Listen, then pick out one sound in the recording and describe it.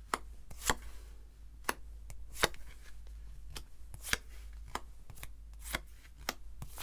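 Cards tap and slide softly on a cloth-covered table.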